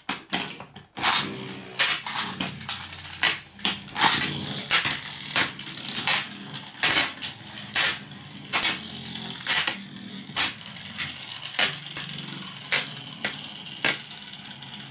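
Spinning tops knock and clack against each other.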